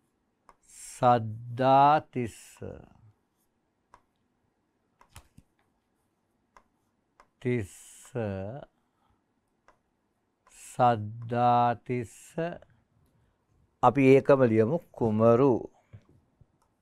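A man speaks clearly and slowly, close to a microphone, in short phrases with pauses.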